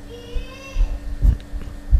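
A finger taps lightly on a touchscreen.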